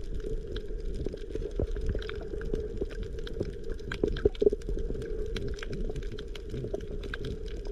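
Underwater, a constant muffled rumble fills the water, with many small crackles and clicks.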